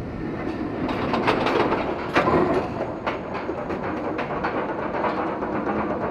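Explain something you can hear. A lift chain clacks rapidly as a roller coaster train climbs.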